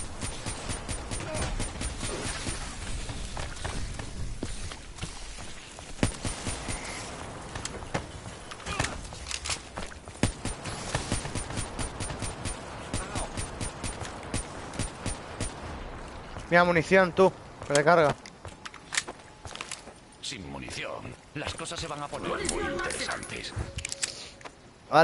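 Guns fire in rapid, rattling bursts.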